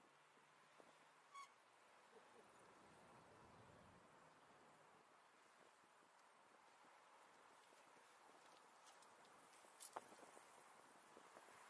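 Bicycle tyres roll steadily over pavement.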